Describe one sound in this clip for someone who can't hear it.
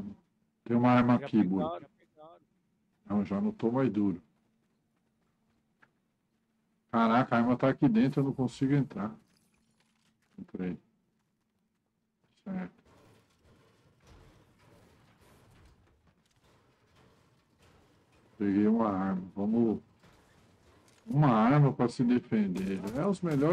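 A middle-aged man talks with animation into a microphone, in bursts with pauses.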